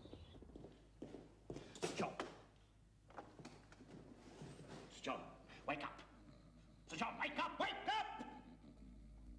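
A man speaks up close, loud and urgent.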